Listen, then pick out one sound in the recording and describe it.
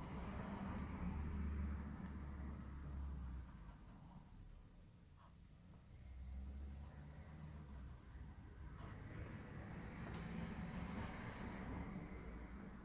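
Fingertips tap and rub lightly on paper.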